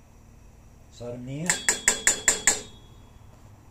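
Metal tongs clink rapidly against a metal pot.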